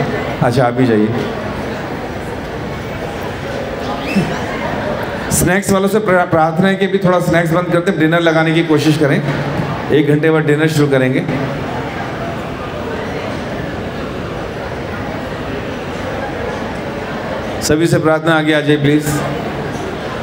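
A man sings into a microphone in phrases, amplified through loudspeakers.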